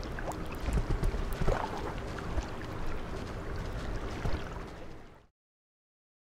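A low, murky rumble with soft drips and clicks plays, then cuts off suddenly.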